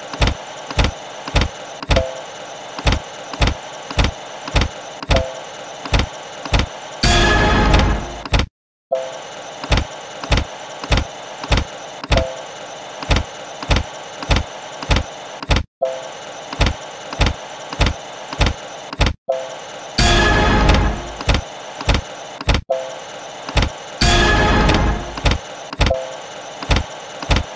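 Slot machine reels spin with a steady run of ticking clicks.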